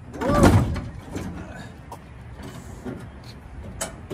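A heavy truck hood clunks as it is pulled open.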